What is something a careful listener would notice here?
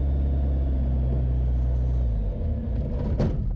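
An aircraft engine hums steadily in the cabin.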